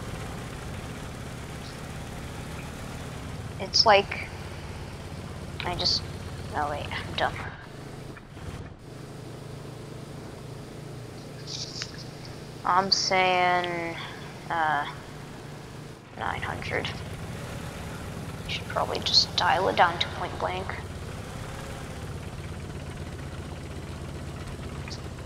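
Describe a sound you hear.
A tank engine rumbles steadily at low pitch.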